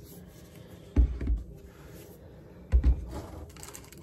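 Plastic bottles knock and thump against the microphone.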